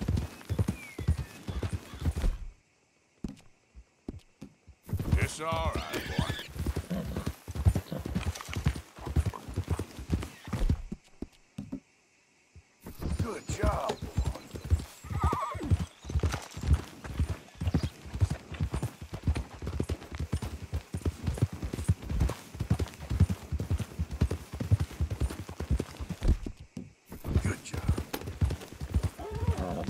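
Horses gallop, their hooves thudding on a dirt trail.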